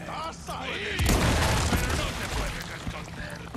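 A grenade explodes with a deep boom.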